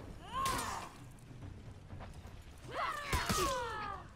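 Steel swords clash and ring.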